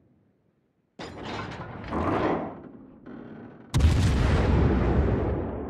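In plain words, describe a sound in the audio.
Shells explode with deep blasts.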